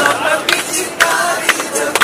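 A bearded man claps his hands.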